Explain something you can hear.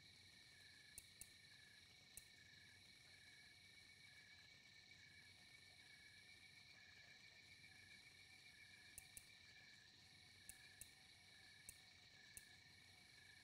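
Short electronic menu clicks tick now and then.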